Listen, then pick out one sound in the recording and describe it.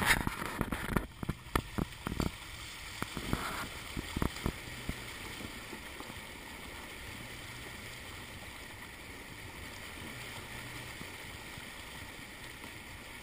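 Water splashes and rushes steadily as a car's tyres drive through a stream.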